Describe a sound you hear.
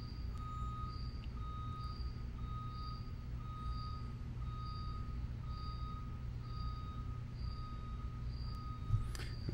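A mobile phone beeps steadily, about once every second.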